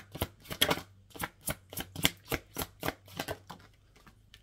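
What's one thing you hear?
Playing cards riffle and snap quickly as they are shuffled by hand.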